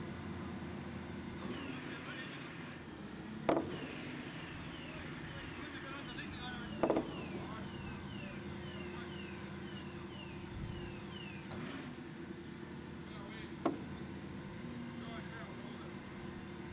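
A crane's engine rumbles steadily.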